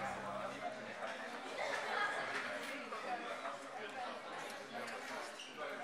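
Men and women chatter in the background.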